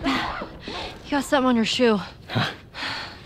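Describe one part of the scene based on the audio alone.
A teenage girl speaks in a teasing voice nearby.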